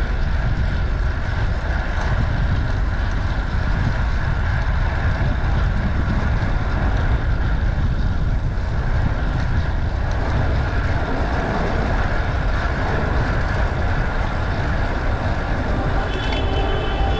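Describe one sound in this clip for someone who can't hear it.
Wind rushes loudly past while cycling.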